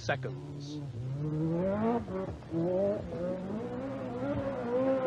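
A rally car engine roars and revs as the car speeds past.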